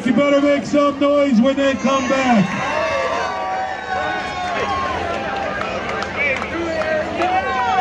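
A live band plays through loudspeakers outdoors.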